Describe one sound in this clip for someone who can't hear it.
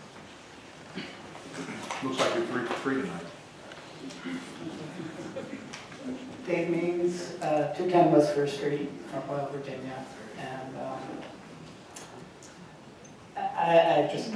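A middle-aged man speaks calmly into a microphone in a room with a slight echo.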